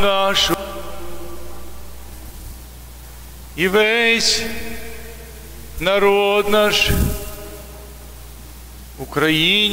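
A man chants in a large echoing hall.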